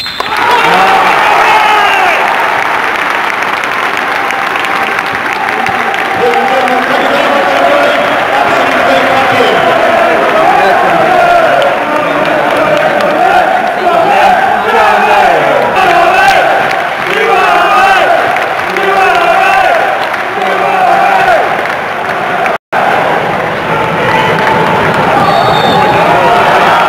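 A crowd of fans chants and sings together.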